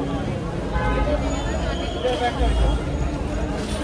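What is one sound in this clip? A crowd murmurs in the background outdoors.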